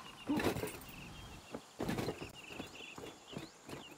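Footsteps thud on dry ground.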